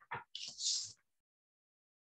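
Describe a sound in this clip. Clothing rustles as a young woman moves close by.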